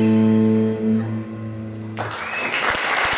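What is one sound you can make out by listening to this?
Electric guitars ring out a sustained chord through loudspeakers.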